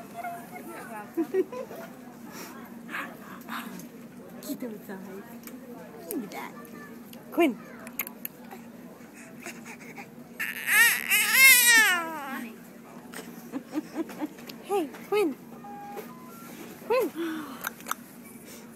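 A baby babbles and squeals happily up close.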